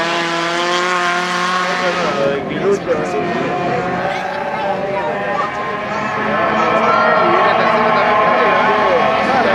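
Several small racing car engines roar and rev loudly as the cars speed past.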